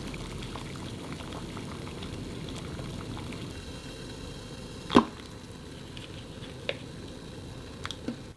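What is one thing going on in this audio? Water bubbles at a rolling boil in a pot.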